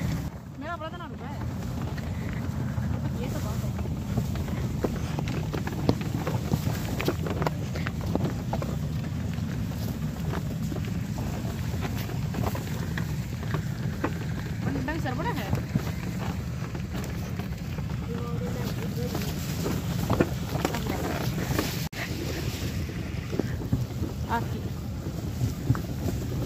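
A cart rumbles and rattles steadily over a dirt track.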